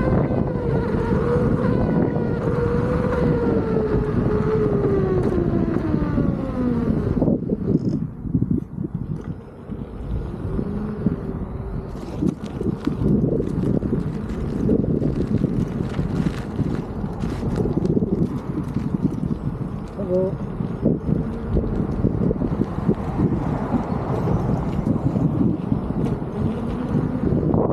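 Wind rumbles and buffets against the microphone.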